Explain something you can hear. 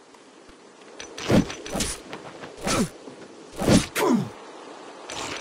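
Sharp blows and swooshes of a fight ring out in quick bursts.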